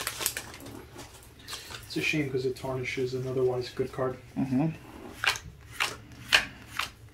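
Trading cards rustle and snap as hands shuffle them.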